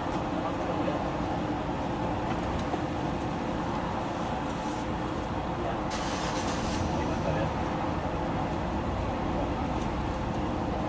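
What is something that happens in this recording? Metal tools click and scrape against a ceiling vent.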